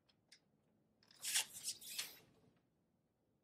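A door opens.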